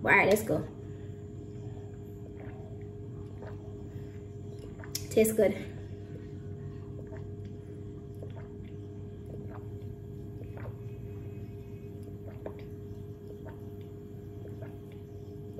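A young woman sips a drink through a straw.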